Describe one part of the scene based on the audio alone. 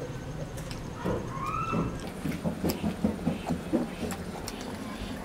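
A young girl chews fried chicken close to a microphone.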